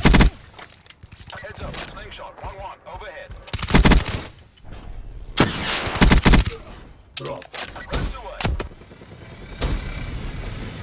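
Gunfire rattles in loud, short bursts.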